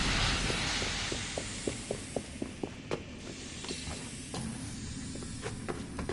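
Footsteps run quickly on stone.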